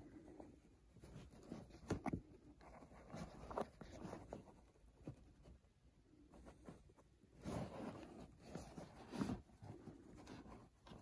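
A hand rustles through a stack of caps, with soft brushing and tapping sounds.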